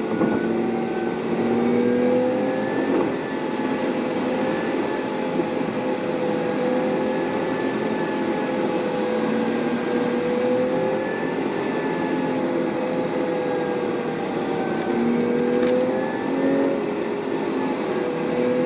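Tyres rumble steadily on a highway.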